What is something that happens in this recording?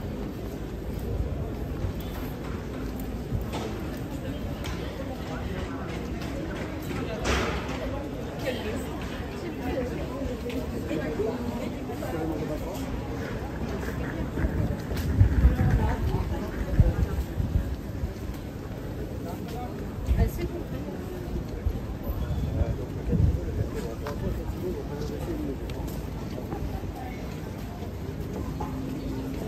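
Many voices murmur in a busy street.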